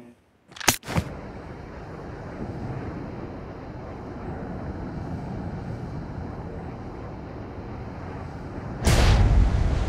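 An airplane engine drones steadily.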